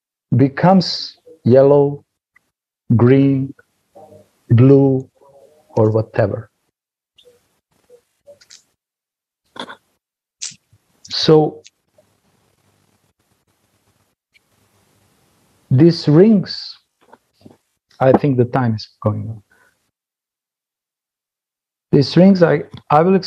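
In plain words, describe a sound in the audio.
A middle-aged man talks with animation over an online call, in short bursts with pauses.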